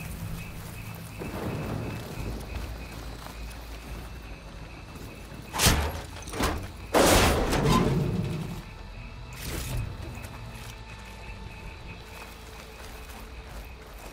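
Footsteps crunch through plants and dirt.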